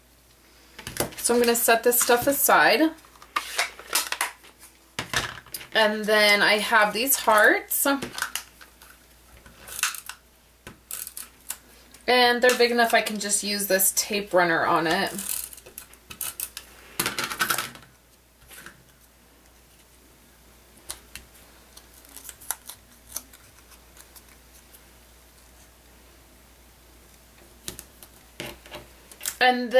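Paper rustles and taps softly as it is handled.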